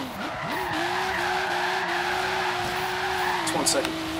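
Tyres screech on asphalt as a car slides through a bend.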